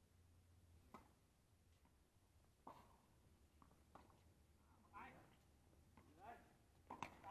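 A tennis ball is struck sharply by rackets, back and forth.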